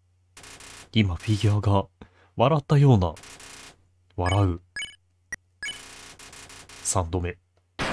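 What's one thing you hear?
Short electronic blips chirp rapidly as game text types out.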